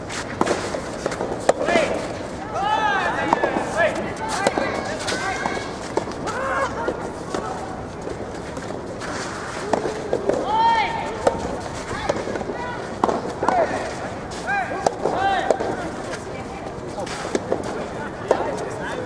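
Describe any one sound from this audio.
Tennis balls are struck back and forth with sharp pops.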